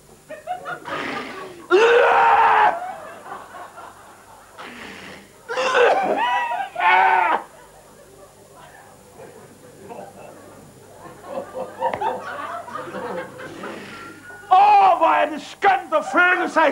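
A middle-aged man shouts and wails dramatically into a microphone.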